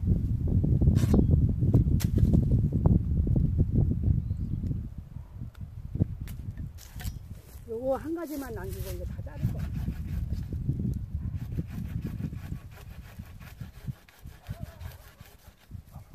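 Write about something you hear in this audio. Pruning shears snip through plum tree branches.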